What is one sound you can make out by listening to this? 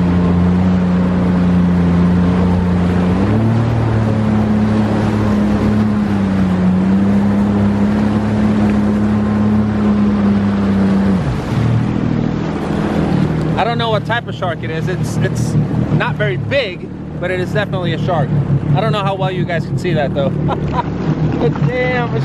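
A boat engine drones steadily, then drops lower.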